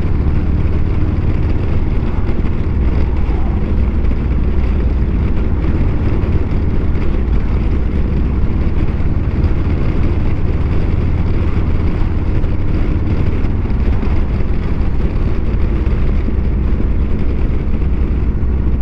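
Wind roars past the rider.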